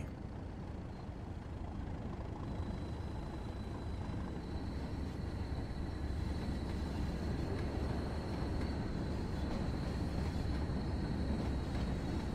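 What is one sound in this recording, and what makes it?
A diesel train rumbles closer and passes by.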